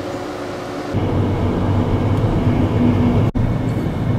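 A car engine hums.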